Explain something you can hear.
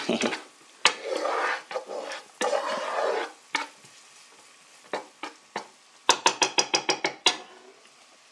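A spatula scrapes and stirs in a frying pan.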